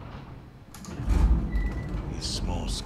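Elevator doors rumble open.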